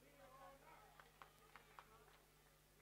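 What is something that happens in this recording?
Hands clap a few times, sharp and close.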